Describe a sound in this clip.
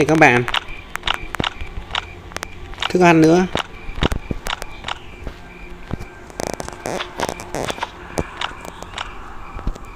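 Short soft clicks sound as items are moved between slots.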